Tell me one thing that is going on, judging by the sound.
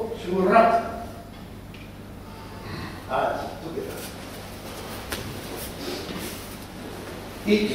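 Men shout sharply in a large echoing hall.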